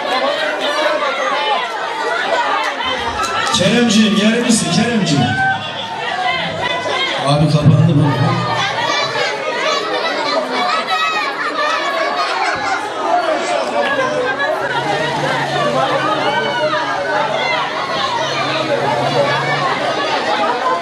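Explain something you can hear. A lively crowd of men and women chatters and cheers outdoors.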